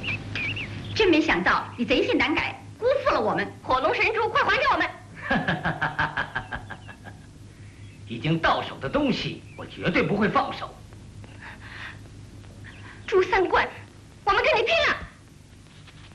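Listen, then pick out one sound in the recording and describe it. A young woman speaks sharply and close by.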